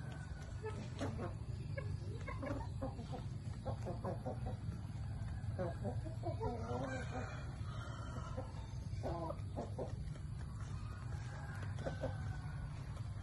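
Chickens cluck and squawk close by.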